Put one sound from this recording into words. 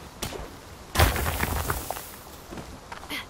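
Rock breaks apart with a loud crash.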